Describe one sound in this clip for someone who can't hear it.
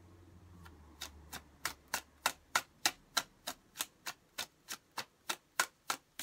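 Playing cards tap and click in a quick, steady rhythm as they are shuffled.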